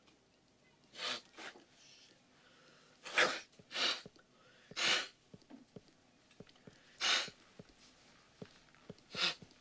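A man sniffles loudly into a tissue.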